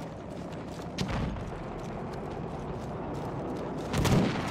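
Explosions boom heavily nearby.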